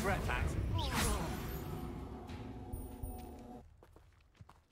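A magic spell bursts with a loud whoosh and rumble.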